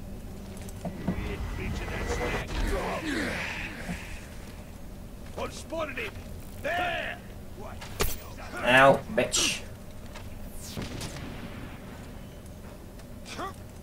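A young man talks with animation into a headset microphone, close up.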